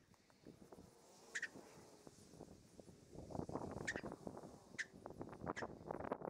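A cloth rubs and wipes over a metal hood.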